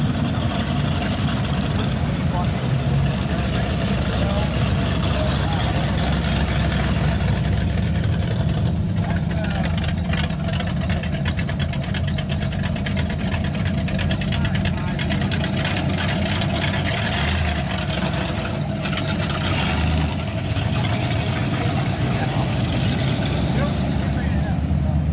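Old car engines rumble and idle close by.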